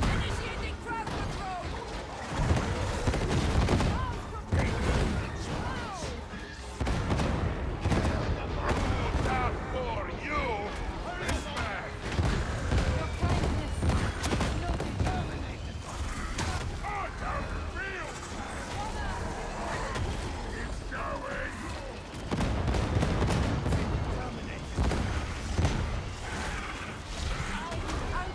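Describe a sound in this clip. Monsters screech and roar.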